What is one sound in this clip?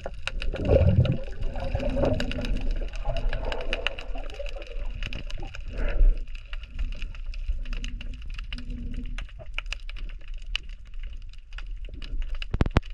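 Water gurgles and rushes softly as a diver swims underwater.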